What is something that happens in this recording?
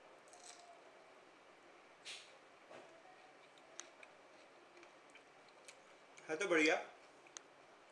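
A young man eats, crunching food close by.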